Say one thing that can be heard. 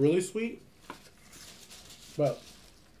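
Paper wrapping crinkles.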